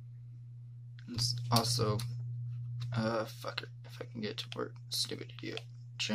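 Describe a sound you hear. A rotary dial clicks as it is turned.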